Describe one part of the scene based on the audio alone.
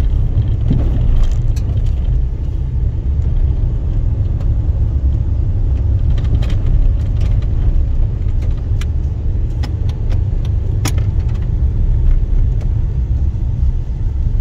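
A vehicle drives along a dirt road, its engine rumbling low and steady.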